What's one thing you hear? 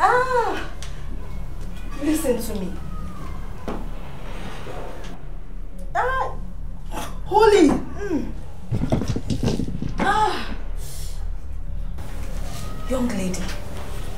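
An elderly woman wails and chants with anguish, close by.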